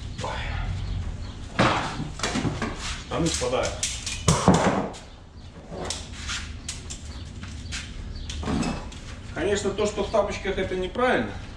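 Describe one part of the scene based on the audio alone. Metal tools clank as they are handled.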